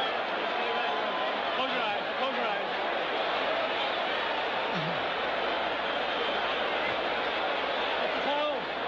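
A large crowd roars and cheers steadily in a big arena.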